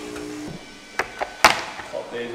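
Hard plastic parts knock onto a wooden table.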